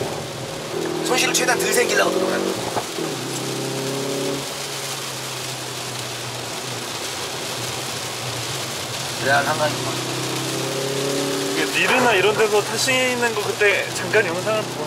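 A man speaks with animation close by.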